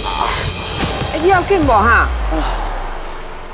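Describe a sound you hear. A man groans loudly in pain close by.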